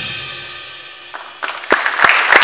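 A jazz big band holds a final chord that rings out and fades.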